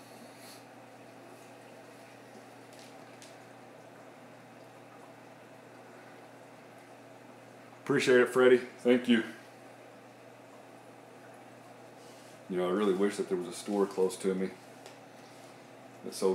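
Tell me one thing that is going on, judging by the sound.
An aquarium pump hums steadily with softly trickling water.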